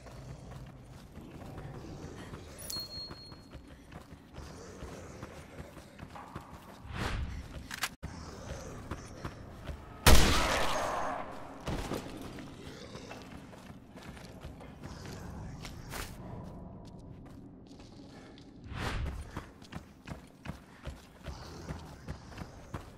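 Footsteps crunch on loose debris.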